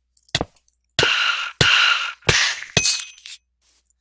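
A sword strikes a small creature with quick hits.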